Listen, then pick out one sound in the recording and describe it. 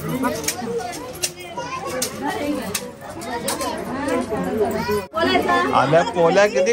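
A crowd of women chatter and talk close by.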